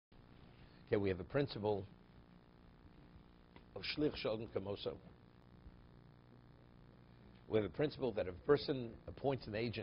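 An elderly man speaks calmly into a nearby microphone, in short bursts with pauses.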